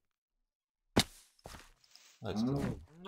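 A block of earth crunches as it is struck and breaks.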